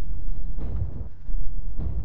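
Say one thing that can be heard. A rushing whoosh bursts out suddenly.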